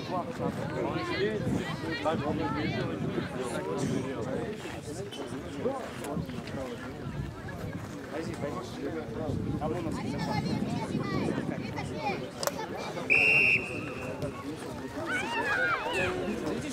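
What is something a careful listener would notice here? Children and young people talk and call out outdoors.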